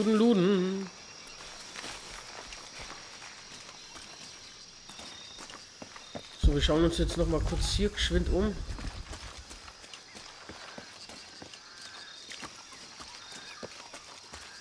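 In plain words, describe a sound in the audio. Footsteps run over dirt and rocks.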